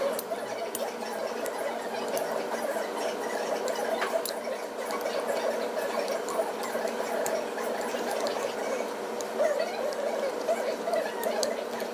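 Metal tongs toss wet noodles, which squelch in a metal bowl.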